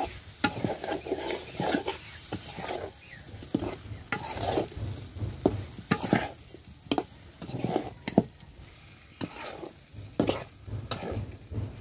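A metal spatula scrapes and clanks against a wok as food is stirred.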